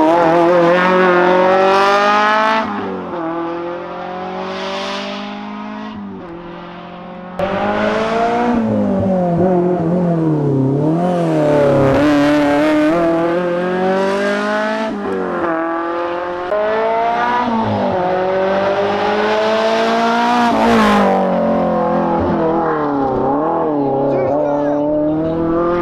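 A rally car engine revs hard and roars past, shifting gears.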